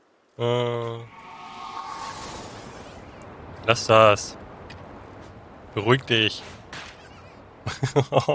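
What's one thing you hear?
Smoke puffs burst with a soft hiss.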